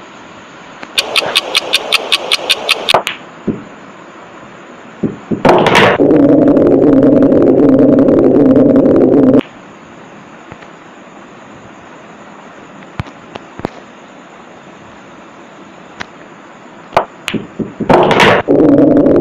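Billiard balls clack sharply against each other.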